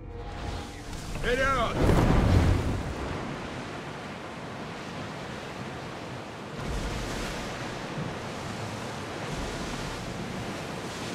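Waves rush and splash against a ship's hull.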